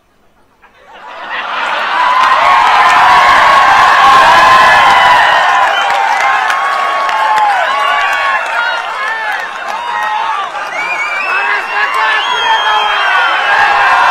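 A large crowd laughs and cheers loudly outdoors.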